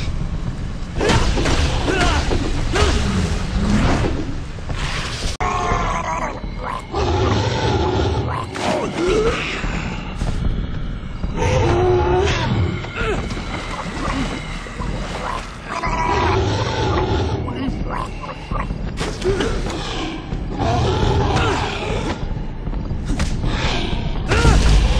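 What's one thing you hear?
Punches and kicks thud during a brawl.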